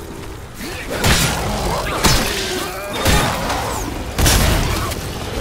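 Heavy blows land with loud, sharp thuds.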